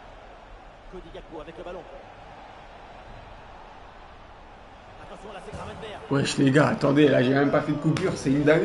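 A young man talks excitedly into a microphone, then shouts loudly.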